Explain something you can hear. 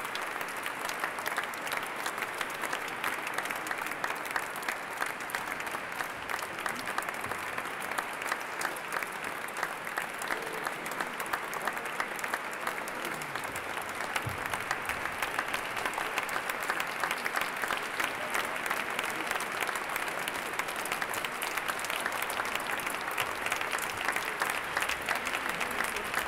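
A group of performers claps and snaps in a quick rhythm.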